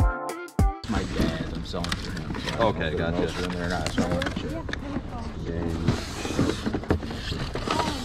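Cardboard scrapes and rustles as a box is handled.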